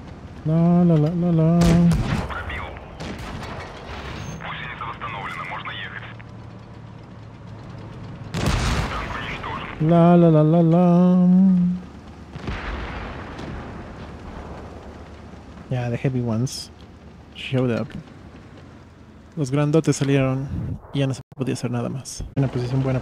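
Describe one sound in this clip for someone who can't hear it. A man speaks loudly and with animation into a close microphone, at times drawing out his words.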